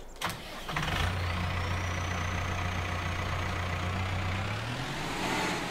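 A tractor engine starts up and idles with a low steady rumble.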